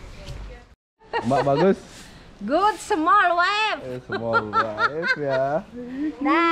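A middle-aged woman speaks cheerfully close by.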